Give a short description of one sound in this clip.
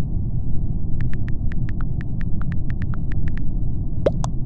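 Soft keyboard taps click quickly in a row.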